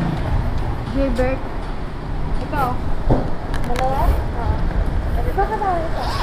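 A young woman speaks briefly, close by.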